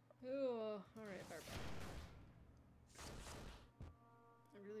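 A fireball sound effect roars and whooshes.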